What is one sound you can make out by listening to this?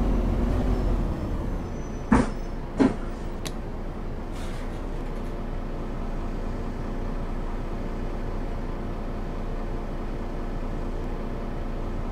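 A bus engine idles low and quietly.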